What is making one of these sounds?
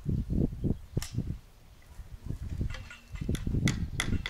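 A wooden board knocks against a post.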